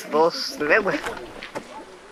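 An elderly woman speaks quietly and close by.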